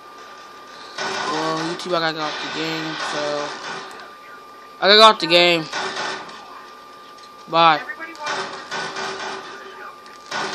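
Gunshots ring out from a video game through a television speaker.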